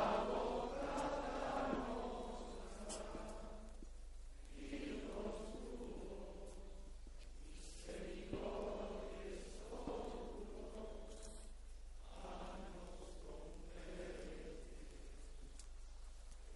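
A large crowd sings together outdoors in long phrases.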